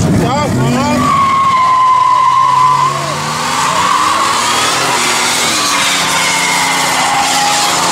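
Tyres squeal shrilly as they spin on the pavement.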